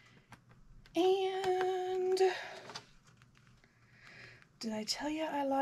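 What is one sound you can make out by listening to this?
A middle-aged woman reads aloud calmly, close by.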